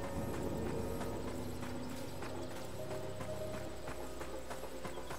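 Quick footsteps thud on a dirt path.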